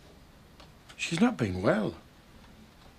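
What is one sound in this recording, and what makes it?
An elderly man speaks briefly in a low, serious voice.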